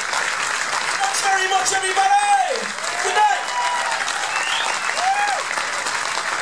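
People in a crowd cheer and whoop loudly.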